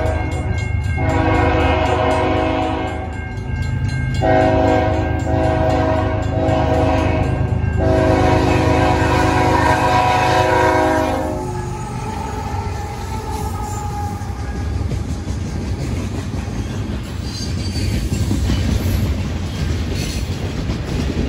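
A locomotive engine rumbles deeply as it passes close by.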